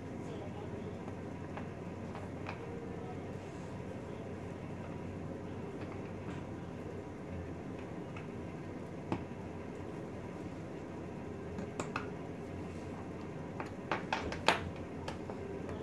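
Small ceramic figurines clink and tap against each other as a hand moves them.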